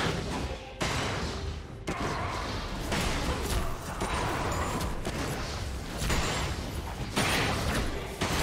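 Game spell effects and attacks clash and burst in a battle.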